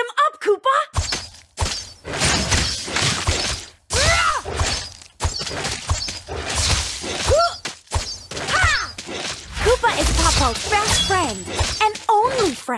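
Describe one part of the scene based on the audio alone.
Magic attacks whoosh and crash in rapid bursts.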